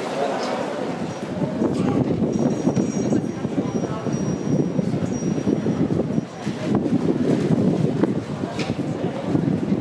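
A crowd murmurs outdoors.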